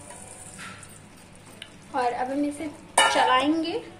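A wooden spatula scrapes and stirs rice in a pan.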